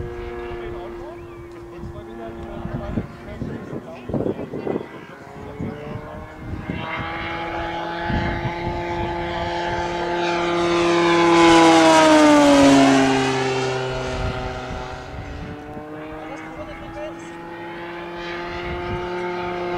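A propeller plane engine drones overhead.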